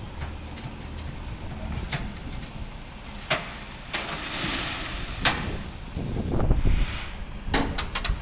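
Metal clanks now and then outdoors.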